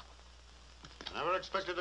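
A man speaks up with emphasis.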